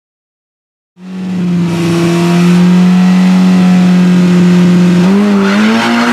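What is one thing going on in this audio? A car engine idles and revs loudly.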